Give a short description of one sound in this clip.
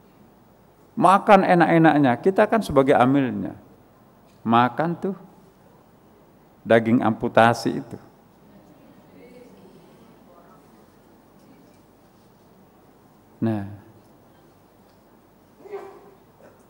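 An elderly man preaches into a microphone in bursts, with pauses between phrases, echoing in a large hall.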